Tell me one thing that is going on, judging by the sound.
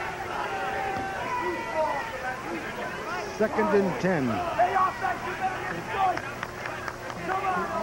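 A large crowd cheers and shouts outdoors.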